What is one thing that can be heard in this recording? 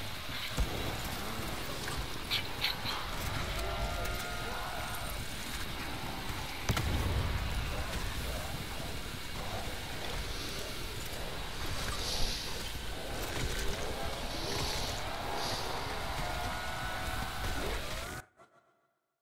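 A ray gun fires sharp energy bursts.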